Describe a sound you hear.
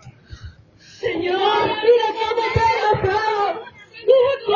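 A group of people sing loudly together nearby.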